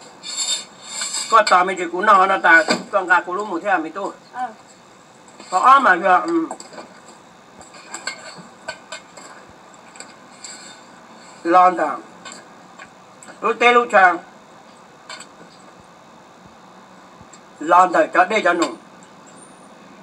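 A spoon scrapes against a metal bowl.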